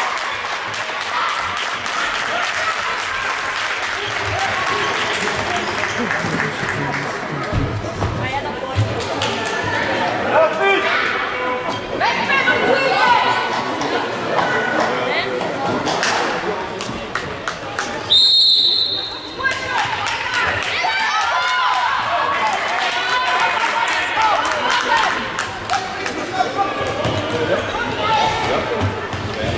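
Young children shout and cheer in a large echoing hall.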